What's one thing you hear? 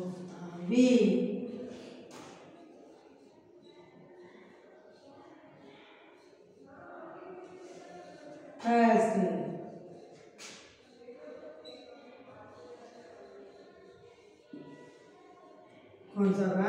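A woman speaks clearly and steadily, as if explaining to a class.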